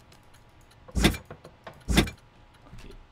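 A heavy metal safe handle clunks twice.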